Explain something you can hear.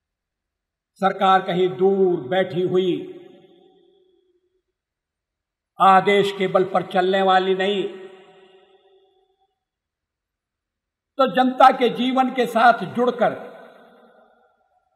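An elderly man speaks in slow, drawn-out phrases with long pauses, heard through an old recording.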